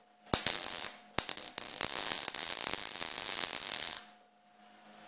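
A welder crackles and sizzles steadily.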